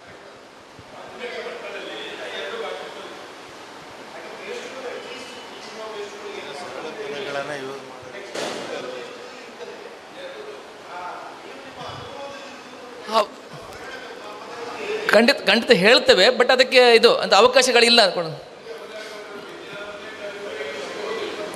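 An elderly man speaks steadily through a microphone in an echoing hall, at times louder.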